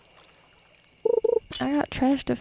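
A bright chime rings as a fish bites the line.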